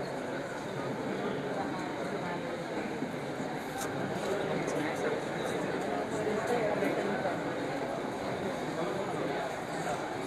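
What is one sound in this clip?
A crowd of people murmurs and chatters indoors.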